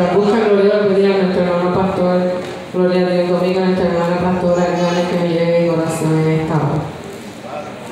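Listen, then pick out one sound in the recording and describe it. A woman sings through a microphone and loudspeakers in an echoing room.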